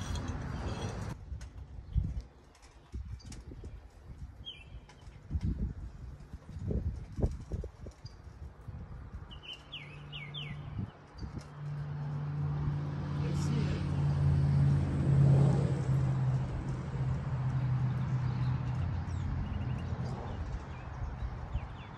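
A man talks calmly nearby, outdoors.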